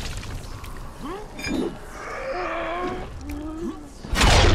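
A zombie groans and moans.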